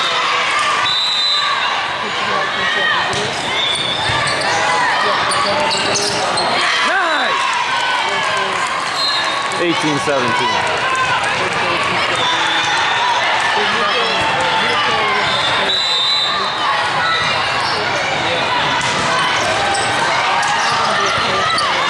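A large echoing hall is filled with the chatter and shouts of many players and spectators.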